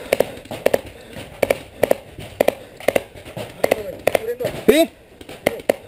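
A paintball marker fires a rapid string of sharp pops close by.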